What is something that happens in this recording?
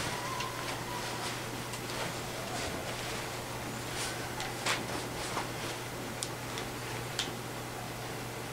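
Hands rustle and brush against a heavy wool coat.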